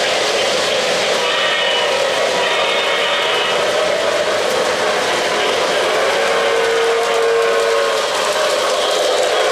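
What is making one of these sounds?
A model freight train rumbles and clatters along three-rail metal track.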